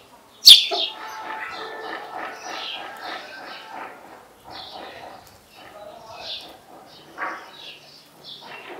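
Hens cluck softly.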